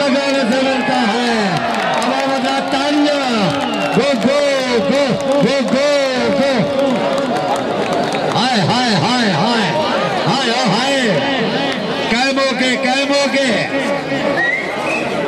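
A man chants rapidly and loudly in a repeating rhythm.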